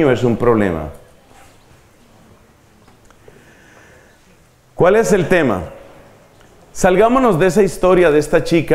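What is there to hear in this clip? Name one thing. A middle-aged man speaks into a microphone with animation, with pauses between phrases.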